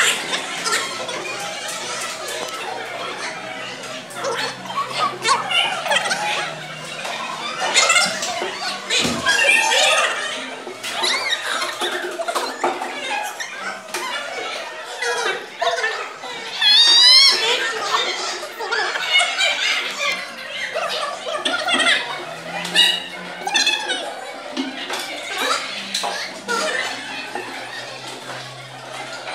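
Young children chatter and call out all around in an echoing room.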